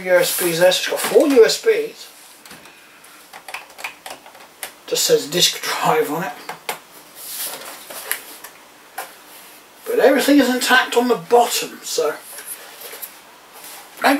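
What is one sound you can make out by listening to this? Laptops clatter as they are handled and stacked.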